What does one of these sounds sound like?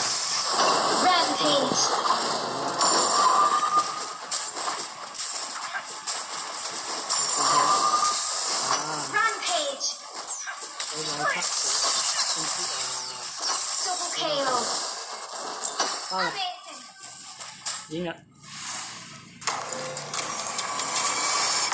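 Game battle effects clash and blast in quick bursts.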